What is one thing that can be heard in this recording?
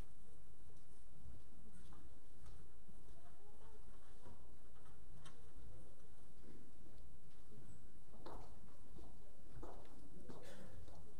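A congregation murmurs quietly in a large echoing hall.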